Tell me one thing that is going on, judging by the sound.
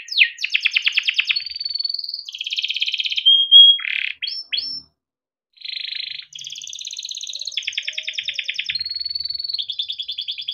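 A canary sings close by in fast, rolling trills and whistles, with a brief pause.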